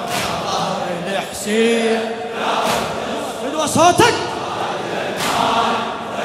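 A large crowd of men chants along in unison.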